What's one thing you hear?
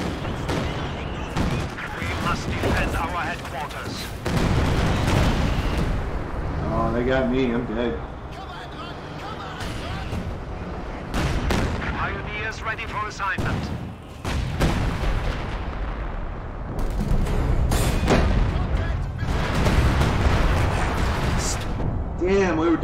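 Explosions boom and rumble in a game.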